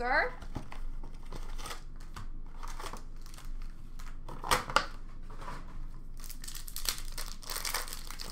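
Cards rustle and scrape as hands sort them.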